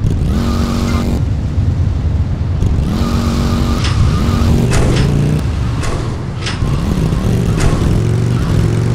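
A motorcycle engine roars and revs up and down.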